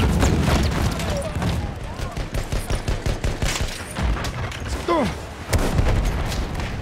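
Gunfire cracks and booms repeatedly.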